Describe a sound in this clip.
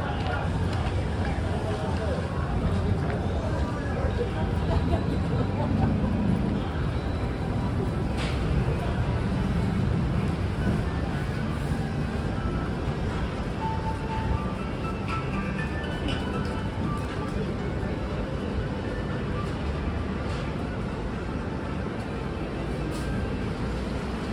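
Footsteps patter on pavement as people walk by.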